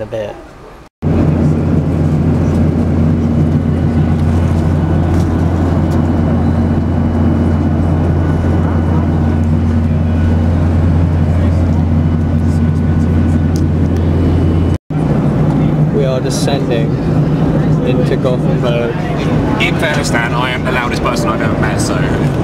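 Jet engines drone steadily inside an aircraft cabin.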